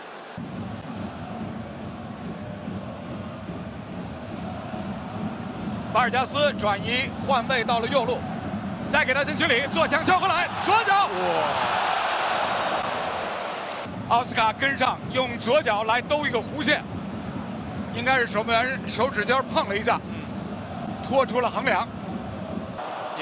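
A stadium crowd murmurs and cheers in a large open space.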